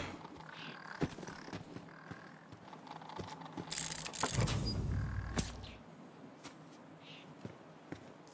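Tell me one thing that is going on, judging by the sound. Footsteps rustle through grass at a steady walking pace.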